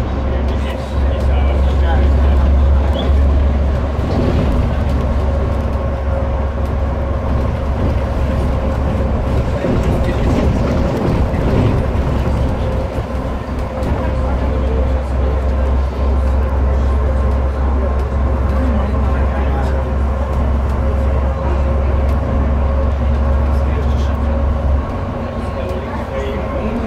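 Tyres roll on the road with a constant rumble.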